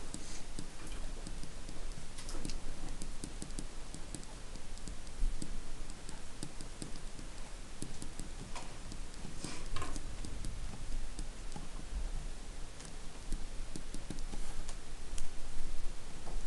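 A felt-tip marker squeaks and scratches across paper in short strokes.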